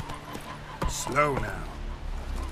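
A horse whinnies loudly.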